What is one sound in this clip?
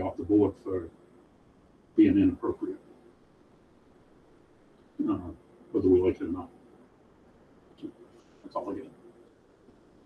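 A man speaks calmly in a room, heard through a meeting microphone.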